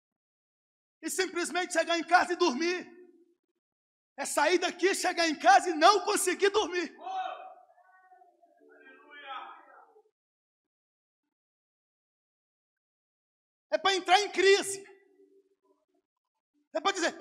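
A man preaches with animation into a microphone through loudspeakers, with long pauses.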